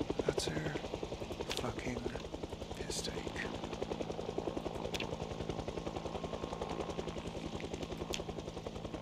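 A van's engine idles with a steady rapid chugging.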